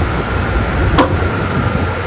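A switch button clicks on a fan base.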